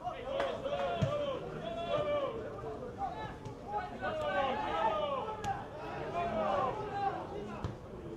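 A football is kicked with a dull thump.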